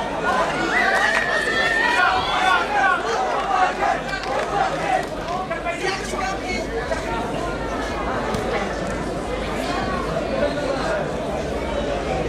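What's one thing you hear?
A crowd shouts and cheers loudly close by.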